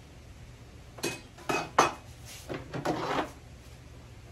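Wooden pieces knock and clatter against a work table.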